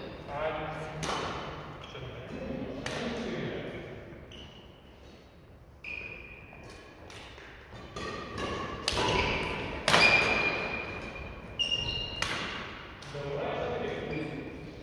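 Badminton rackets sharply strike shuttlecocks in a large echoing hall.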